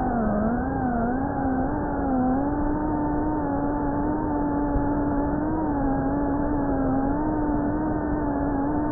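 A drone's propellers whine with a steady hum that wavers slightly in pitch.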